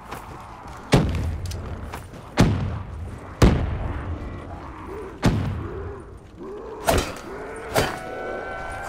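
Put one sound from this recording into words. A ray gun fires sharp zapping blasts.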